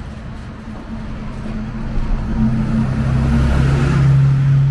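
A bus engine rumbles nearby.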